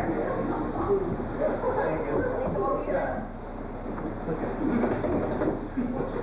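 Several men talk with one another at a moderate distance.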